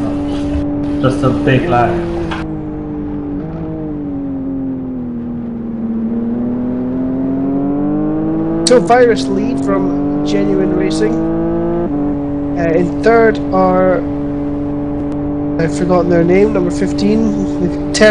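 A racing car engine hums steadily close by, its pitch slowly rising and falling.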